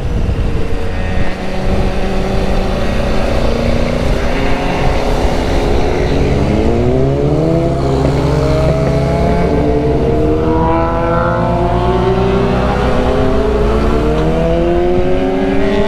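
A motorcycle engine hums steadily and rises in pitch as it speeds up.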